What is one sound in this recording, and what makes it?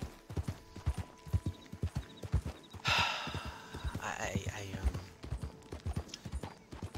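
A horse's hooves thud steadily on soft ground at a gallop.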